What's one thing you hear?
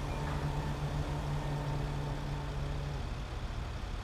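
A large truck engine idles with a steady low hum.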